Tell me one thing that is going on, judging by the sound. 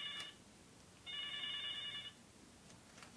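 An electronic tone beeps from a phone.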